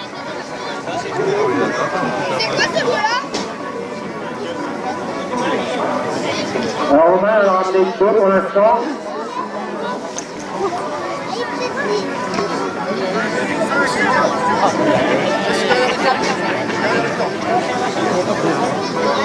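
A crowd of young men talks and shouts outdoors close by.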